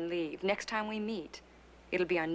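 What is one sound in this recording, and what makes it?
A woman speaks with concern, close by.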